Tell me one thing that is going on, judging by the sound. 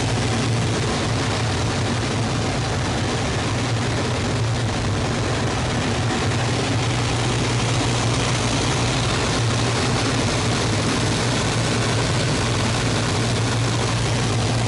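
Wind rushes hard past the cockpit.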